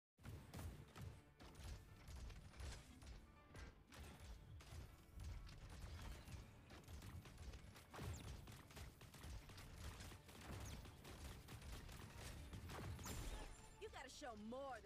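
A flaming weapon swings and whooshes in rapid bursts.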